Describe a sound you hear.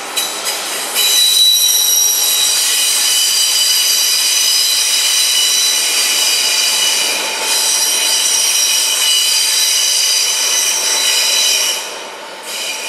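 Train brakes squeal loudly and steadily.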